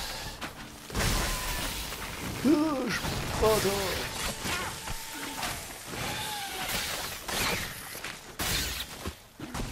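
A sword slashes and strikes a creature.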